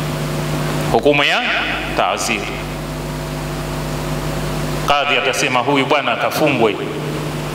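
A middle-aged man speaks calmly and with emphasis into a close microphone.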